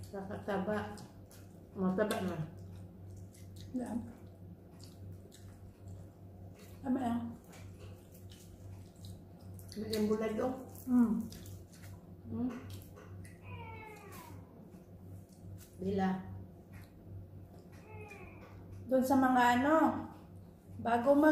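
Dry food crunches and rustles as hands pick at it.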